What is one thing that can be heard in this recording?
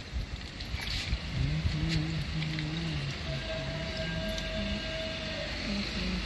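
Water pours from a small cup into soil.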